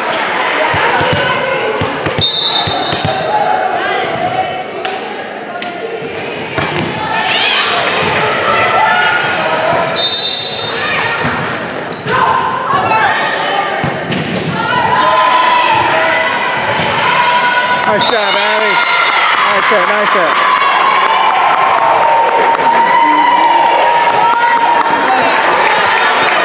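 Young women shout and call out during play.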